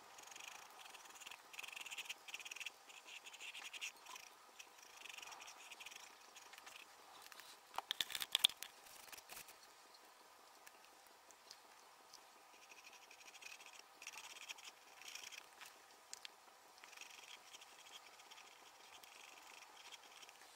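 A paintbrush dabs and scratches softly on a hard surface.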